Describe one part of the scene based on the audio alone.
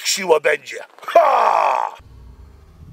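A man shouts.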